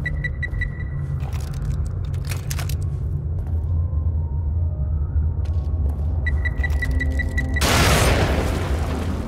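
A gun fires with loud booming blasts.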